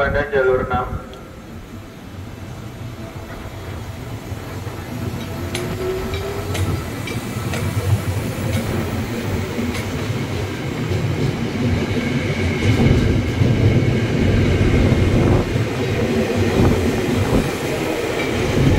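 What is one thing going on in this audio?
A train rumbles past close by, growing louder.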